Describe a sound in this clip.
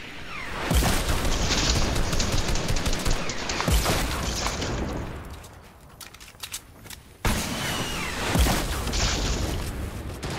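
A shotgun fires in a game.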